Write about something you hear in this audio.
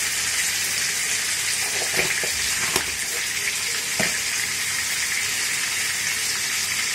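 Vegetables sizzle steadily in a hot frying pan.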